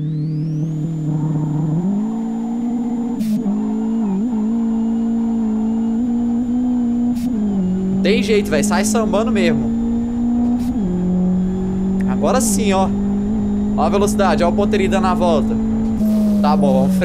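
A car engine revs steadily, its pitch jumping as gears shift.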